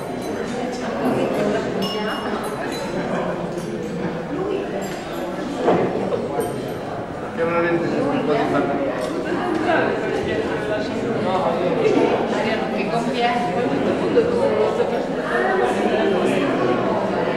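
A crowd of people chatter in a room that echoes.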